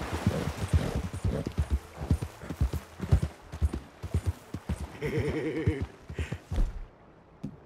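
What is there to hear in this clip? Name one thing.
Horse hooves thud on soft ground at a steady trot.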